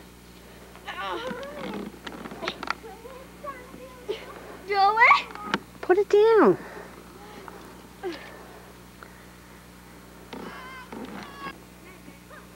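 A young child calls out from a short distance outdoors.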